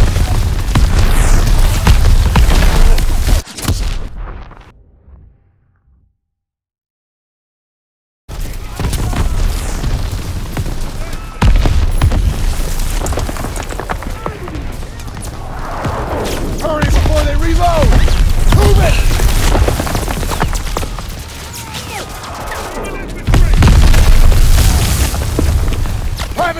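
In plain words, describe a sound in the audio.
Explosions boom and rumble close by.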